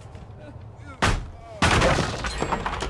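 Wooden planks crash down with a loud clatter.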